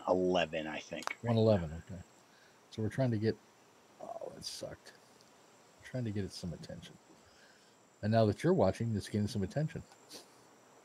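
A middle-aged man talks casually into a close microphone.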